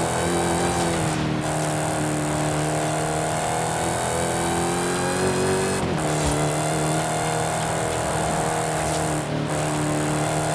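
Tyres hum on the road at speed.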